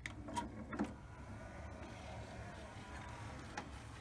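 A disc tray slides open with a motor whir.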